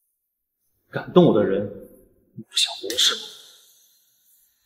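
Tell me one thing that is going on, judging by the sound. A young man speaks sternly.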